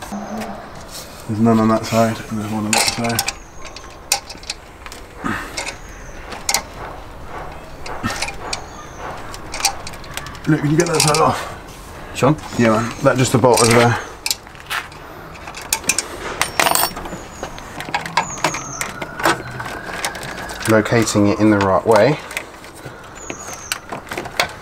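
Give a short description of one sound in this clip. Metal parts click and clink as hands work on a car engine.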